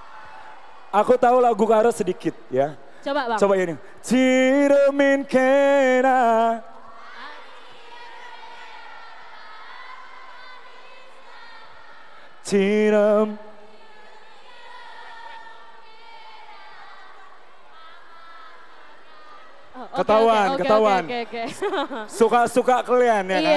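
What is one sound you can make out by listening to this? A young woman sings through a microphone and loudspeakers.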